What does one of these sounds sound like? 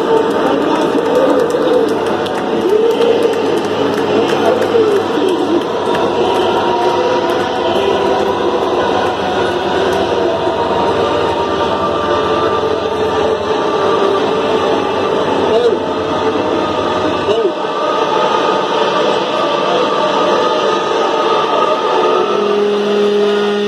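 A crowd chatters and shouts nearby.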